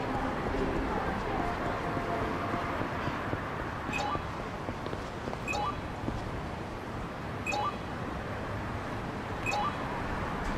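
Footsteps walk briskly on pavement.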